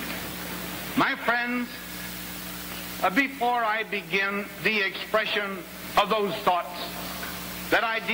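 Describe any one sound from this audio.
An elderly man speaks slowly and formally through a microphone and loudspeakers.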